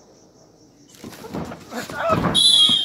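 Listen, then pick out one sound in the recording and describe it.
A crowd outdoors cheers and shouts loudly.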